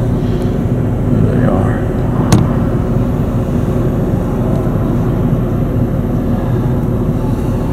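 A woman talks quietly nearby.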